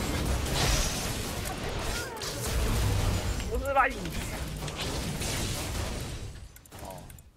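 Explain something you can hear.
Magic spell effects crackle and boom in a fast game battle.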